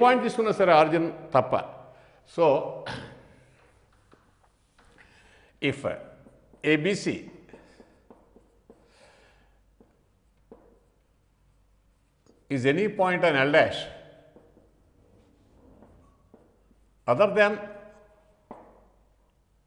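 An elderly man speaks calmly and clearly, as if explaining, heard close through a microphone.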